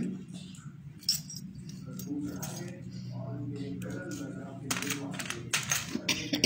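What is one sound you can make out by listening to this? Small metal jewellery clinks lightly as it is handled.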